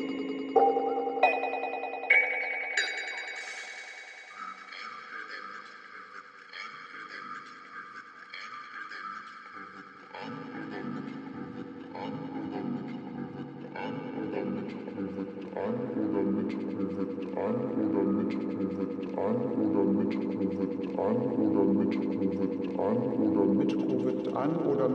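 Processed electronic tones ring and shimmer, then settle into a pulsing, repeating pattern that slowly grows louder.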